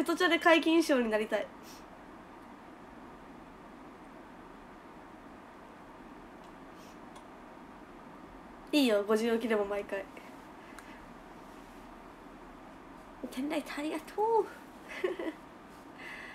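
A young woman speaks brightly and close to a microphone, in short bursts with pauses.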